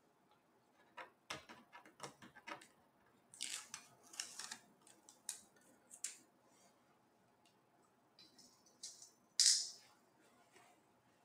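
A small screwdriver clicks and scrapes against plastic.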